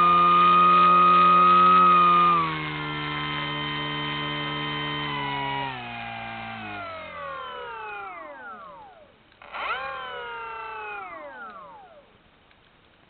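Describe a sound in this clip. A small electric motor whines loudly, then falls in pitch and winds down.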